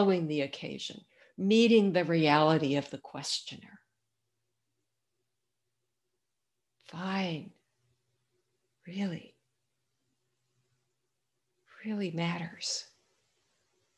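An older woman speaks calmly through an online call, with long pauses.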